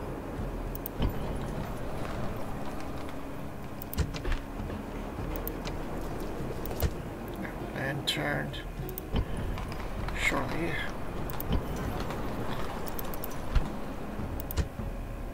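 Short interface clicks sound now and then.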